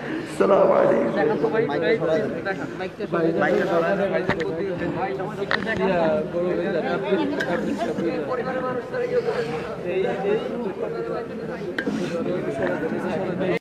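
A large crowd of men chants loudly and together, close by, outdoors.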